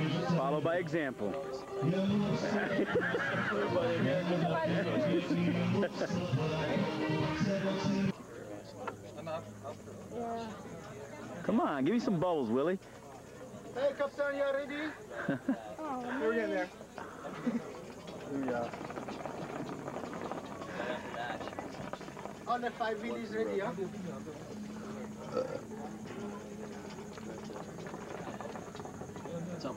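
Water bubbles in a hookah as a man draws smoke through it.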